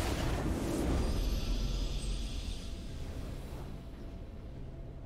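A triumphant fanfare swells and fades.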